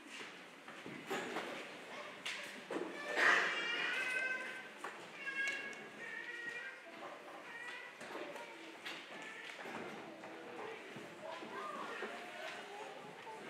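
A choir of young children sings together in a hall with some echo.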